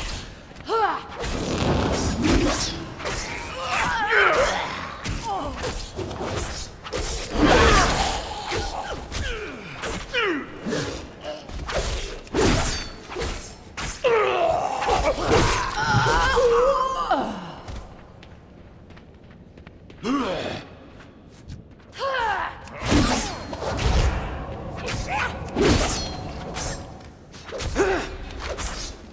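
Swords clash and spells burst in a fast game battle.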